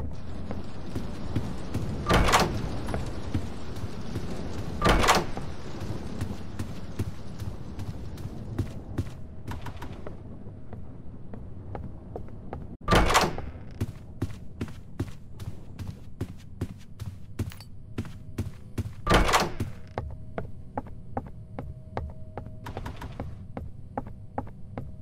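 Footsteps tread steadily across a wooden floor.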